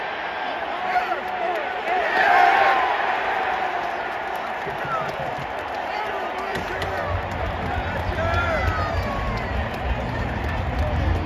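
Nearby fans shout and whoop.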